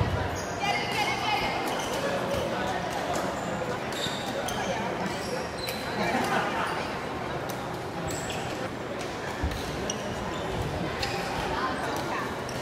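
Several people talk and call out in the background.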